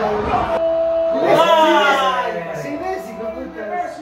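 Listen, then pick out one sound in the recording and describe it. Young men shout and cheer loudly.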